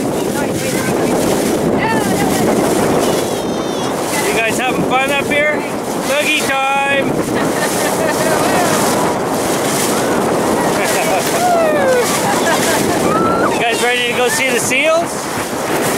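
Wind blows hard and steadily outdoors.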